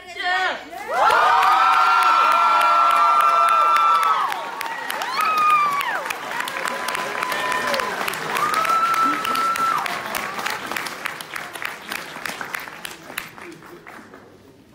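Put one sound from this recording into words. A group of people clap their hands rapidly.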